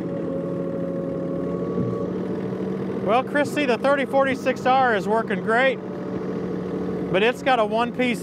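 A tractor engine hums steadily nearby.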